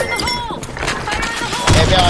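A shotgun fires a loud blast.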